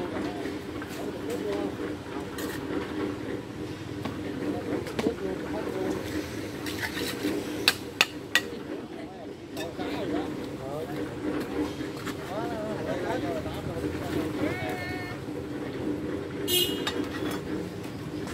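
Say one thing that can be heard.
An elderly man talks calmly nearby, outdoors.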